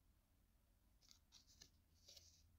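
A stiff paper card rustles faintly as it is turned over.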